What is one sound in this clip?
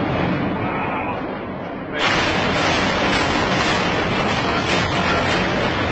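Strong wind roars and gusts outdoors, growing louder partway through.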